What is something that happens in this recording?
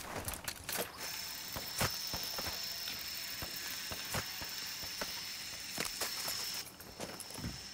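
A rope winch whirs steadily with a high whine as it reels upward.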